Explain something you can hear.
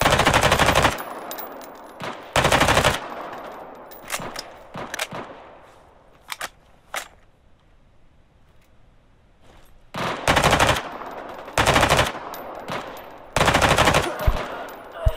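A rifle fires loud bursts that echo.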